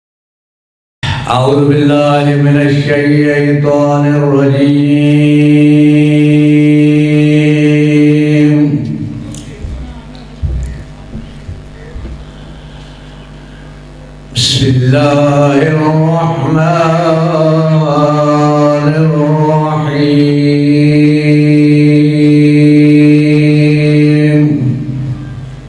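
A man chants loudly in a long, drawn-out singing voice through a microphone, with pauses.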